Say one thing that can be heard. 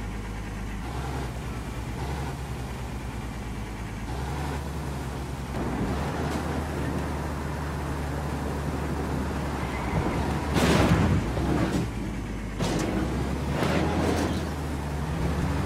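A box truck engine drones as the truck drives along.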